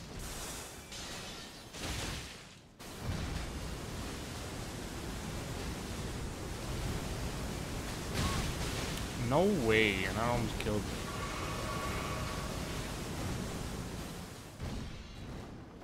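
Bright magic bursts crash and rumble.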